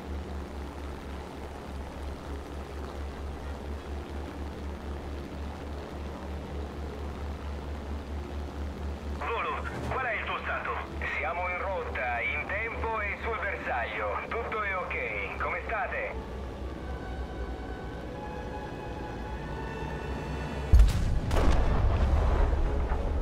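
Propeller engines drone steadily with a low throb.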